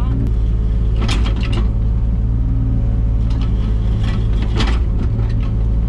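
A digger bucket scrapes and clanks against soil and stones.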